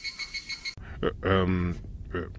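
A man speaks in a low voice, close by.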